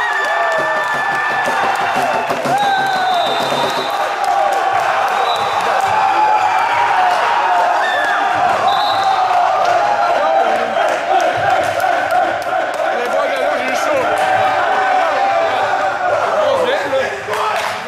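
A crowd of young men cheers and shouts loudly.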